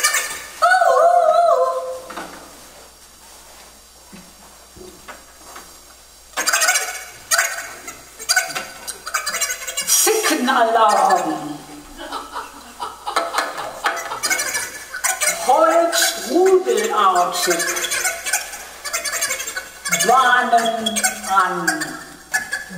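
A man sings expressively into a nearby microphone.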